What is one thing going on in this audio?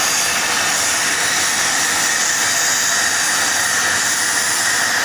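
A plasma torch cuts through steel with a loud, steady hiss.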